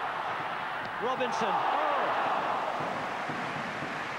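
A stadium crowd roars loudly.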